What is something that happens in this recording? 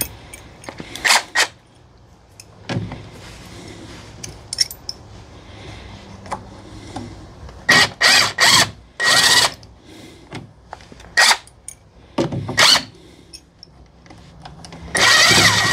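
A cordless impact driver whirs and hammers in short bursts on metal bolts.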